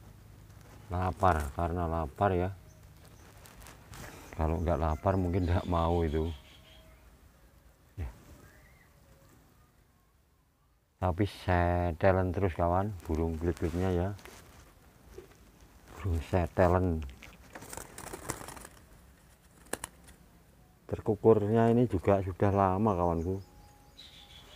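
A small caged bird sings close by in loud, warbling bursts.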